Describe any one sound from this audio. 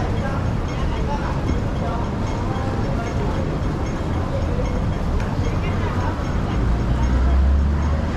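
Footsteps shuffle on pavement as people cross.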